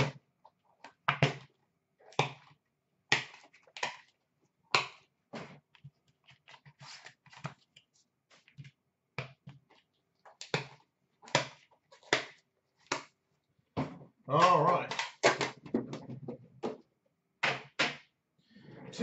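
Trading cards click and tap sharply against a hard surface.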